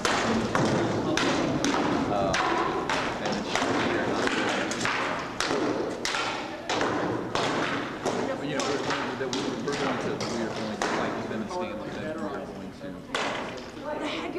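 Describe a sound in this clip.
Armour clatters as two fighters wrestle.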